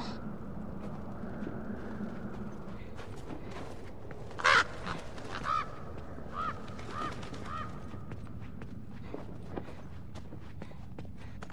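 Footsteps crunch through snow and over hard ground.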